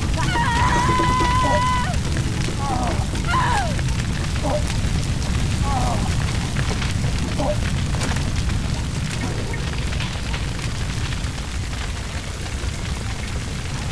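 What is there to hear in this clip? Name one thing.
A fire roars and crackles nearby.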